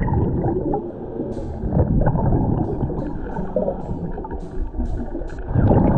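Water churns and rumbles with a muffled, underwater sound.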